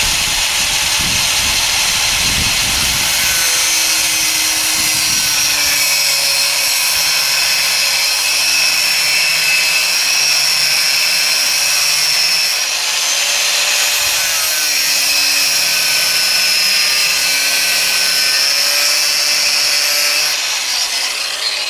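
An angle grinder whines loudly as it cuts into metal.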